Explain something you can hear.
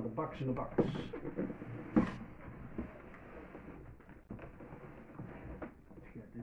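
A man opens the flaps of a cardboard box, the cardboard scraping and rustling.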